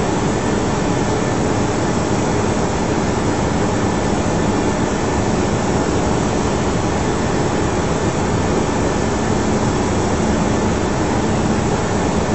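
Jet engines and rushing air roar steadily inside an aircraft in flight.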